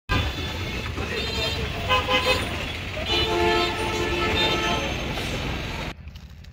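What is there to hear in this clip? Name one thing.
Traffic rumbles steadily on a busy street.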